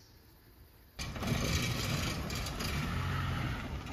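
A vehicle engine rumbles as it drives along a dirt track.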